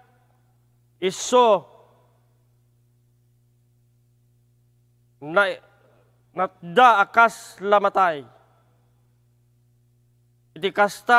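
An older man reads aloud slowly and calmly, close to a microphone, with long pauses.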